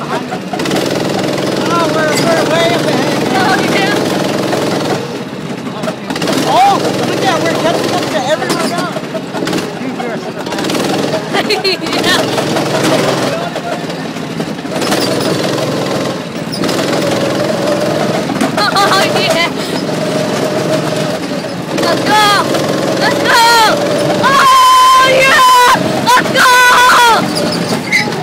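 A small go-kart engine drones steadily at close range.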